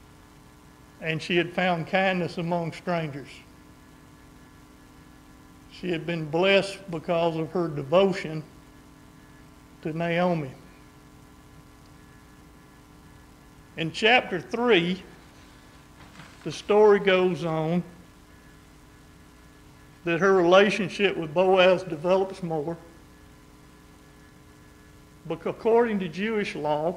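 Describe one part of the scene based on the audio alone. A man speaks calmly through a microphone in bursts with pauses, in a hall with a slight echo.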